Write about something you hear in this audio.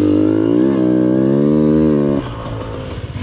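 A dirt bike engine revs loudly close by.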